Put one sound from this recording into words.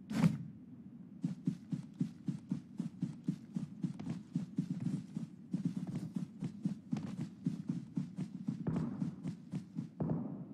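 Footsteps rustle through grass at a run.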